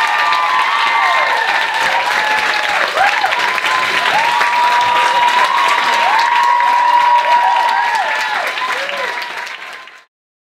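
People in an audience whistle shrilly.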